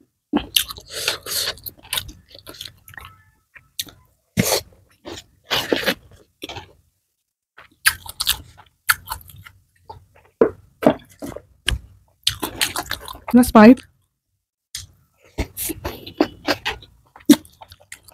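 A young woman chews and smacks her lips loudly, close to a microphone.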